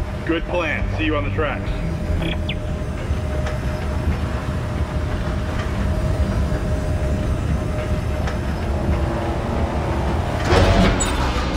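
An elevator hums low and steadily as it rides.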